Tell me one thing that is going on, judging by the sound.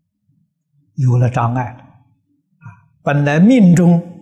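An elderly man speaks calmly and close up.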